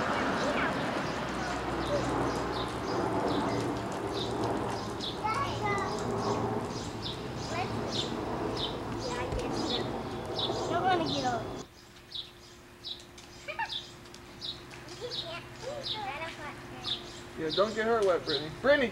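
Young girls talk and squeal excitedly outdoors.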